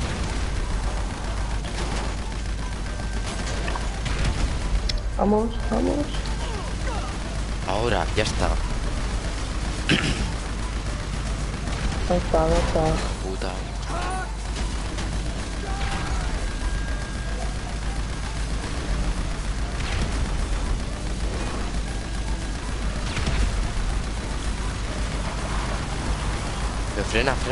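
A buggy engine rumbles steadily.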